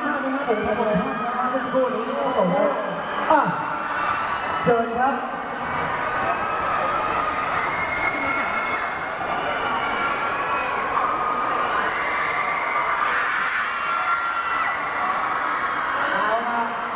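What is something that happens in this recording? A crowd cheers and chatters loudly at a noisy event.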